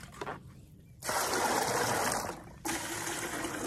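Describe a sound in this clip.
Water pours and splashes out of a tipped plastic pot.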